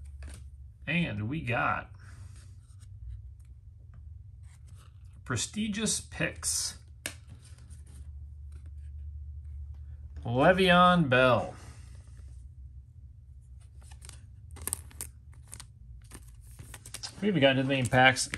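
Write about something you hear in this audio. Trading cards rustle and click softly as they are shuffled by hand.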